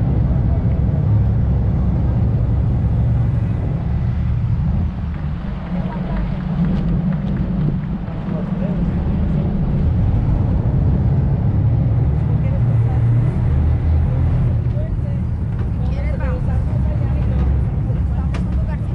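Wind buffets loudly and steadily outdoors.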